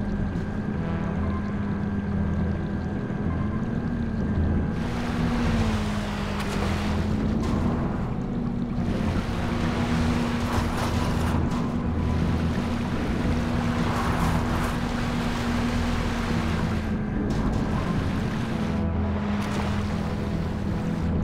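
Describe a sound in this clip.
A submarine's motor hums steadily.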